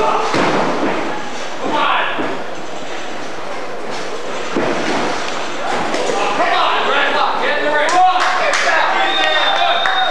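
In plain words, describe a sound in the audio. Bodies slam onto a mat with loud thuds.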